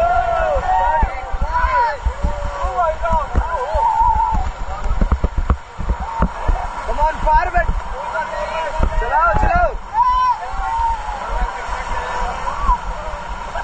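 River rapids roar and rush close by.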